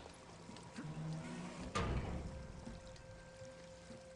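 A heavy metal vault door thuds open.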